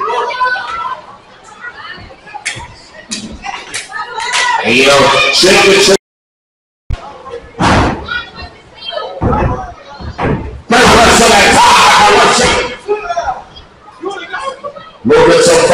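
A crowd cheers and shouts loudly in an echoing hall.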